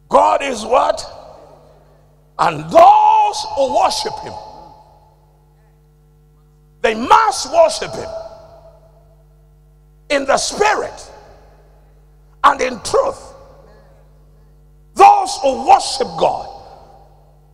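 A man preaches forcefully into a microphone in short bursts, echoing in a large hall.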